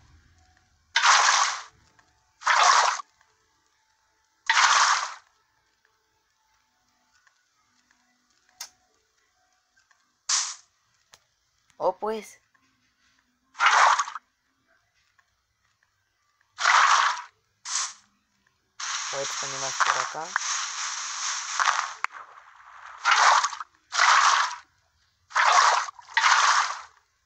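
Blocks crunch in short, repeated bursts as they are dug out.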